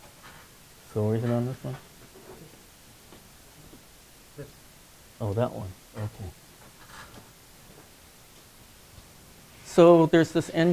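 An elderly man speaks in short bursts.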